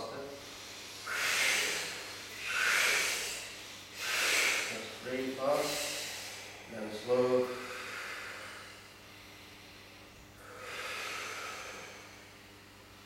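A man breathes deeply and slowly in and out.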